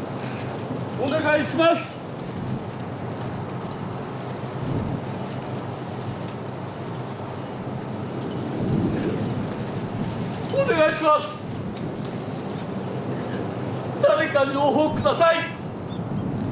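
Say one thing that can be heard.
An elderly man cries out with emotion, close by.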